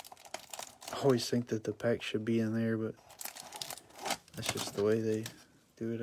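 Cardboard scrapes and rustles as a small box is handled.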